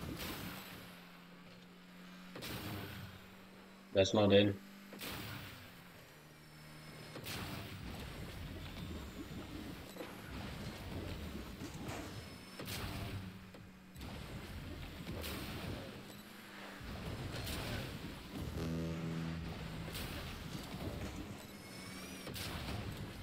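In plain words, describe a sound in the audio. A game car's engine hums steadily.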